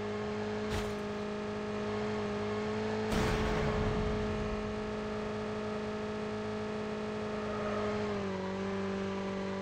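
A motorbike engine drones steadily, dropping slightly in pitch near the end.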